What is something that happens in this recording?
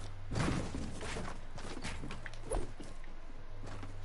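Footsteps clatter quickly on wooden planks.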